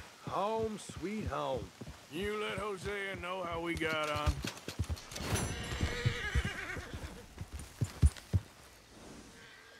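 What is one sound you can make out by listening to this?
Horse hooves thud on soft ground at a steady trot.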